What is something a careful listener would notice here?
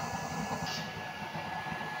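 Water bubbles and boils in a pot.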